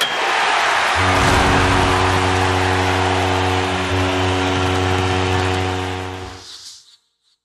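A goal horn blares loudly.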